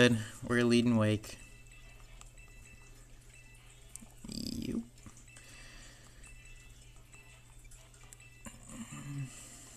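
Buttons click on a handheld game console.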